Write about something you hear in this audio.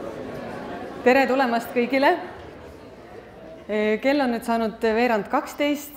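A young woman speaks calmly into a microphone, heard over loudspeakers in a large hall.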